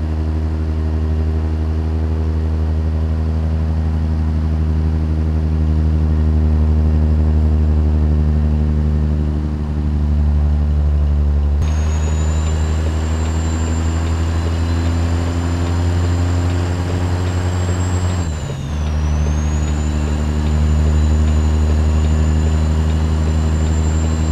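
A truck's diesel engine drones steadily.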